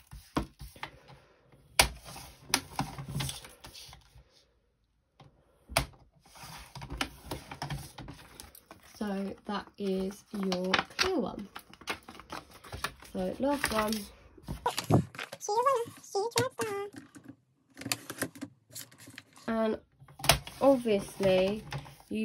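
Plastic sleeves crinkle and rustle as hands handle them.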